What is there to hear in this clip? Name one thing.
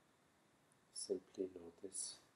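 An elderly man speaks up nearby.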